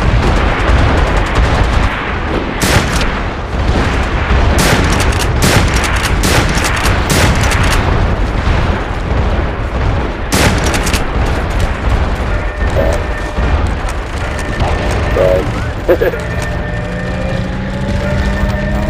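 Gunfire cracks and booms in rapid bursts.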